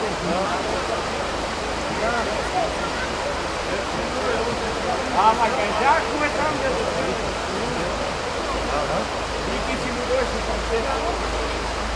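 A river rushes steadily over stones nearby.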